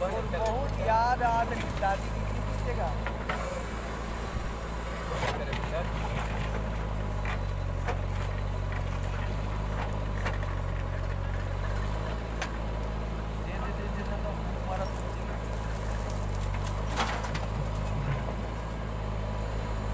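Dirt and stones spill from a digger bucket into a trailer.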